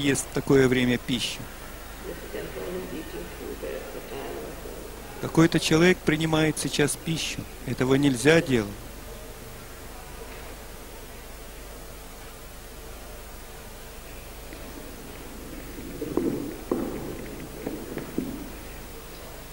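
A woman speaks calmly into a microphone, heard through a loudspeaker.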